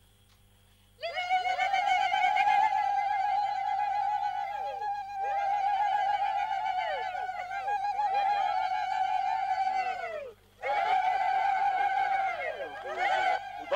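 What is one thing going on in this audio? A woman sings a long, high, wavering tune.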